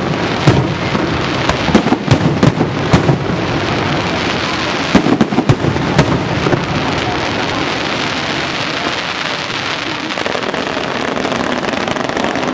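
Fireworks crackle and fizzle steadily.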